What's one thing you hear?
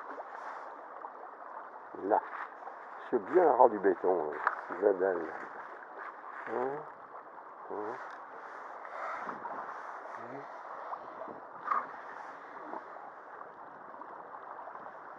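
A shallow river rushes and burbles steadily over stones.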